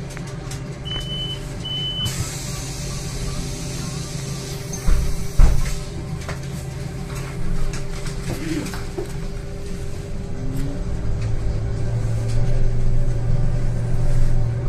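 A bus engine hums steadily from inside the bus.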